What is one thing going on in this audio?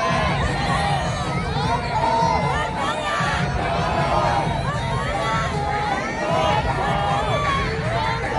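A crowd roars and cheers in a large echoing arena.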